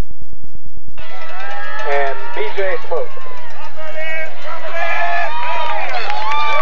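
A crowd cheers and shouts from the stands outdoors.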